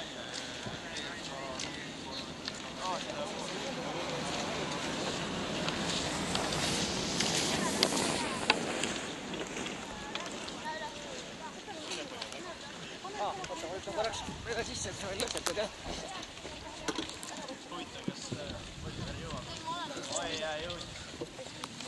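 Voices of a small crowd chatter outdoors in the distance.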